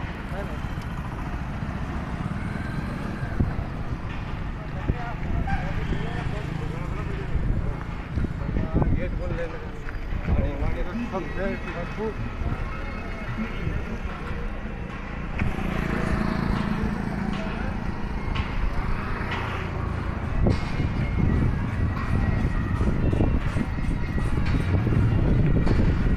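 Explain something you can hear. Motorbike engines hum along a road outdoors.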